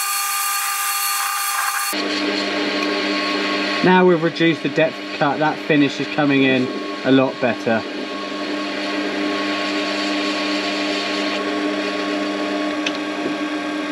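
A cutting tool scrapes and shaves metal as the lathe turns.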